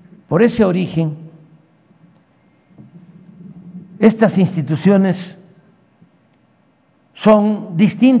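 An elderly man speaks firmly into a microphone, heard through loudspeakers in a large room.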